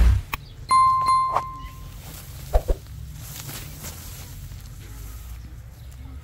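Grass rustles and brushes close by.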